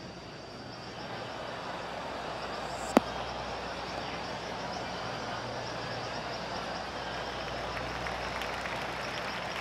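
A crowd of spectators murmurs in the distance.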